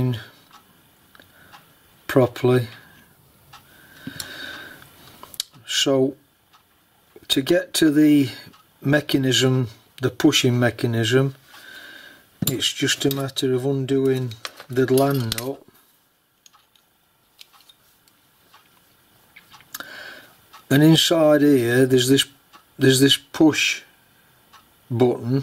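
Small metal parts click and scrape against each other.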